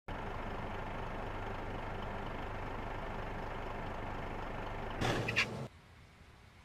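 A diesel bus engine idles.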